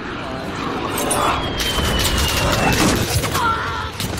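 Gunshots crack in short bursts.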